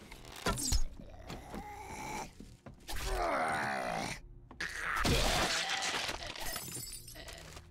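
A zombie snarls and groans as it lunges.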